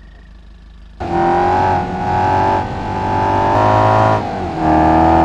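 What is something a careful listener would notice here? A sports car engine revs loudly as it accelerates.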